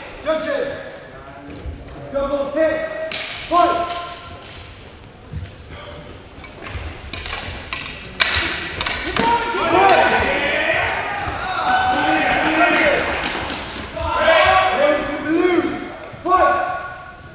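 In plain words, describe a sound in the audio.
A man calls out in a large echoing hall.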